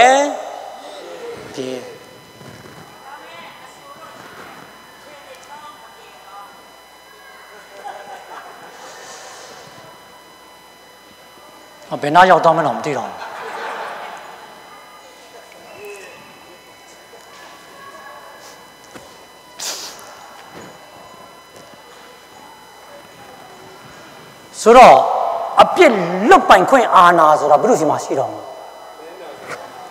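A man speaks slowly and with feeling through a microphone in a large hall, with long pauses.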